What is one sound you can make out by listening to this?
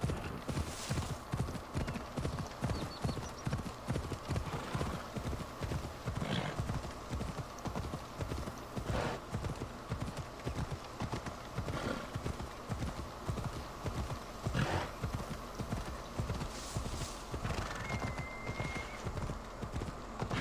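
Horse hooves thud rapidly and steadily on the ground at a gallop.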